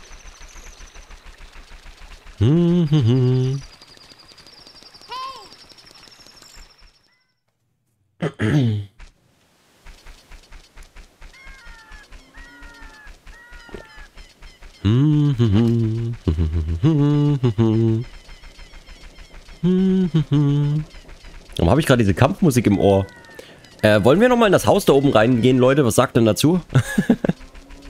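Quick footsteps patter steadily on the ground.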